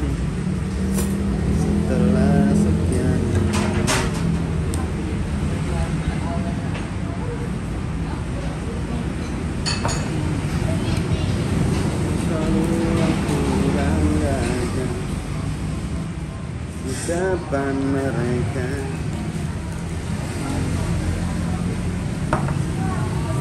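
Utensils clink against bowls.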